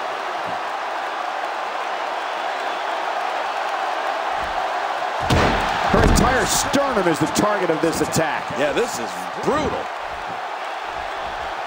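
A large crowd murmurs and cheers in a big arena.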